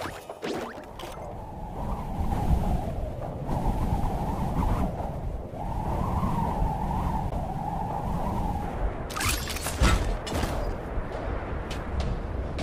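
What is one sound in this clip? Wind rushes loudly during a fast fall through the air.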